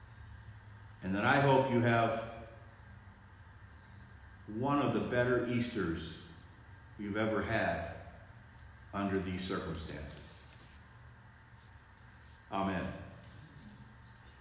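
A middle-aged man speaks calmly in short phrases, close by, in a room with a slight echo.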